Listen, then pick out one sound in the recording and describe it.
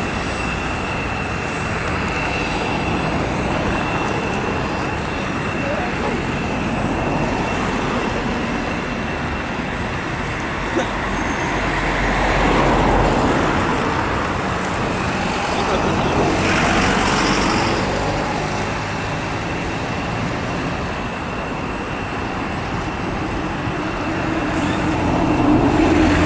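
Jet engines roar and whine steadily outdoors.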